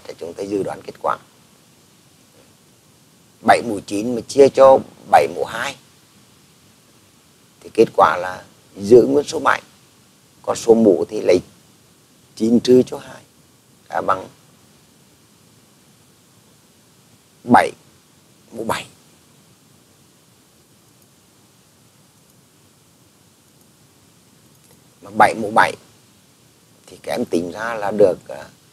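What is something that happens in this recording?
A man explains calmly through a microphone, with pauses.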